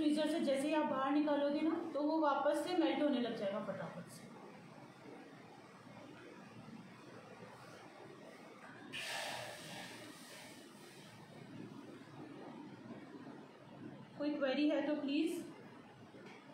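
A woman speaks nearby, calmly and clearly.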